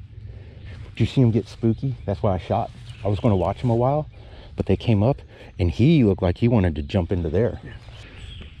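A man talks excitedly and loudly, close to the microphone.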